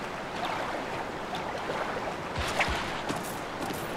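Water splashes as a figure wades through it.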